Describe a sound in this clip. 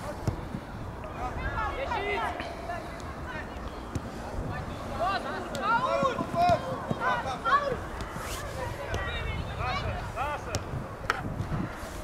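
Young men shout to each other from across an open field.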